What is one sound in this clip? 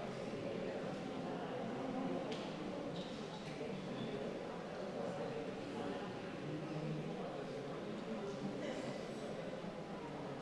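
A crowd of men and women murmur and talk quietly nearby in an echoing room.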